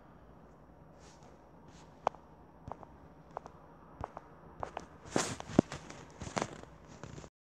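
A plush toy rubs and rustles against a microphone.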